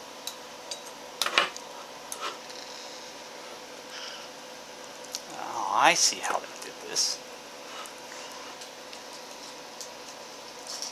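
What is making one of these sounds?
Small metal lamp parts click and clink as hands work on them.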